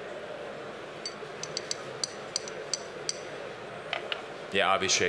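Glasses and bottles clink lightly.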